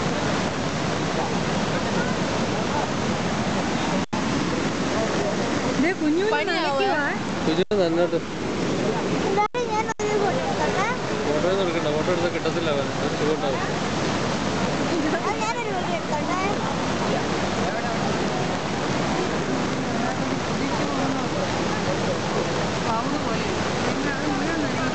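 A large waterfall roars steadily and loudly.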